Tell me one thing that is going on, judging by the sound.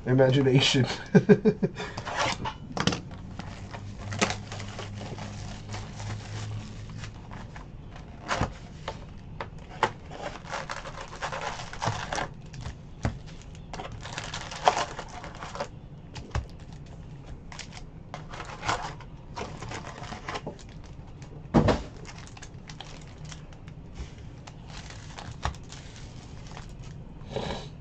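Foil card packs crinkle and rustle close by.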